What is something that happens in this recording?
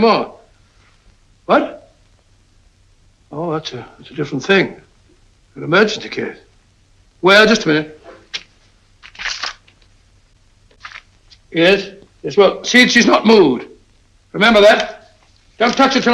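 An older man speaks on a telephone in short, halting phrases.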